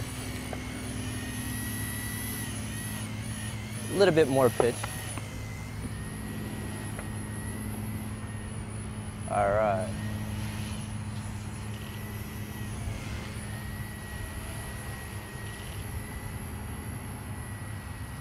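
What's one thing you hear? A model helicopter's rotor whines steadily overhead, rising and falling in pitch as it manoeuvres.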